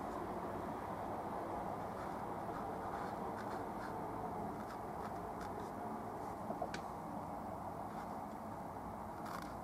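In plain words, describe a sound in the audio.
A paintbrush dabs and strokes softly on canvas.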